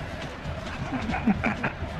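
A young man laughs heartily close by.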